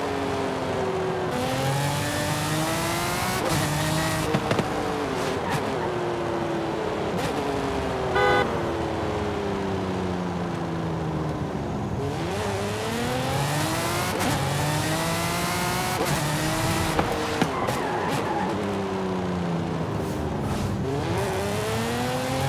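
A racing car engine roars, revving up and down through gear changes.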